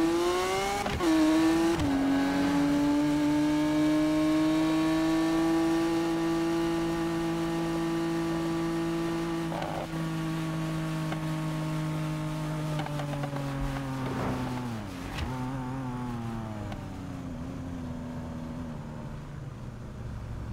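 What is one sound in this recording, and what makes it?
A sports car engine roars loudly, then winds down as the car slows.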